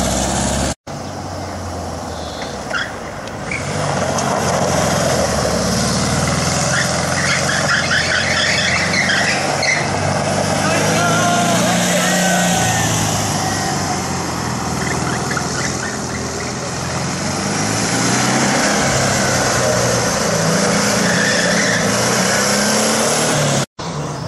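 A small car engine revs and hums loudly nearby.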